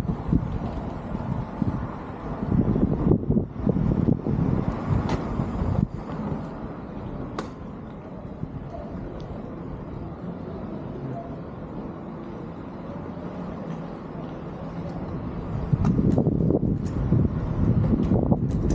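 Wind buffets the microphone, outdoors.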